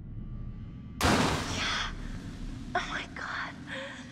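A flare ignites and hisses loudly.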